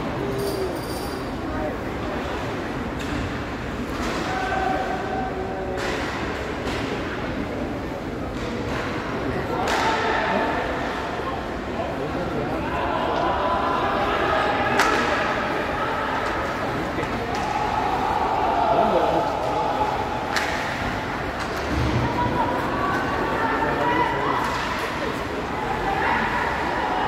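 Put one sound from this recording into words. Ice skates scrape and hiss across the ice.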